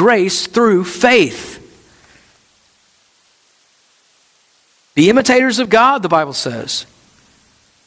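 A middle-aged man speaks calmly through a headset microphone, pausing between phrases.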